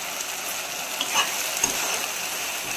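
A spoon scrapes and knocks against a pan.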